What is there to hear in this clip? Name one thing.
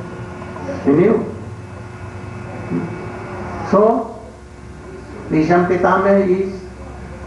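An elderly man speaks slowly and calmly into a microphone, in short phrases with pauses.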